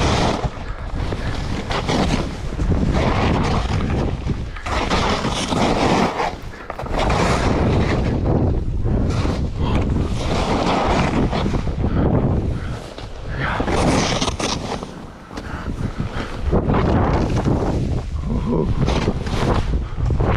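Skis hiss and scrape through deep powder snow.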